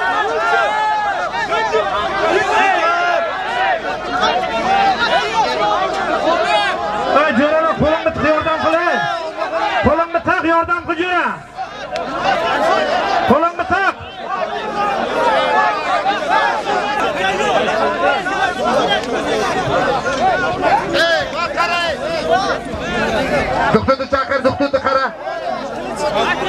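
A large crowd of men shouts and calls out all around, close by and outdoors.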